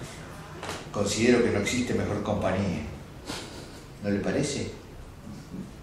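An elderly man reads out through a microphone.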